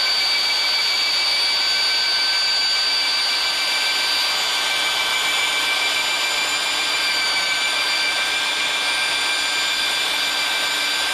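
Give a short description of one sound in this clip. A power drill whirs steadily as it mixes paint.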